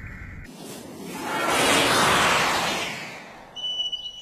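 An aircraft roars past overhead.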